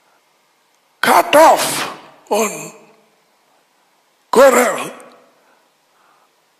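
An elderly man speaks calmly into a headset microphone, in short phrases with pauses.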